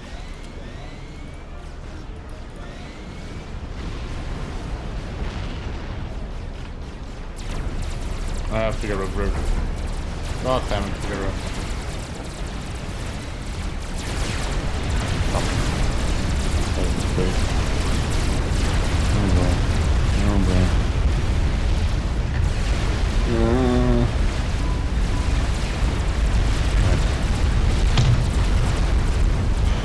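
Distant explosions rumble low and steadily.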